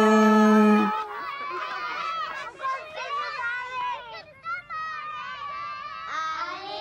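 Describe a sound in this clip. Children talk through a loudspeaker.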